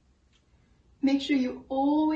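A woman speaks with animation up close.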